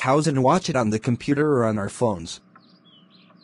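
A young man speaks calmly and close up.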